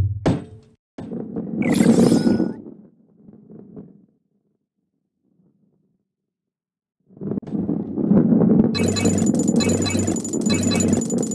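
A ball rolls and rumbles along a track.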